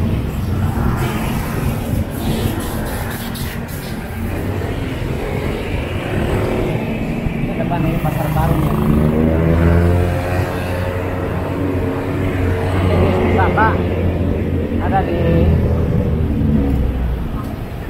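A motorcycle engine hums steadily up close, rising and falling in pitch as it speeds up and slows.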